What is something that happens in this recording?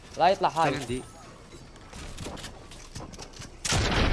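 Wooden walls snap into place in quick succession.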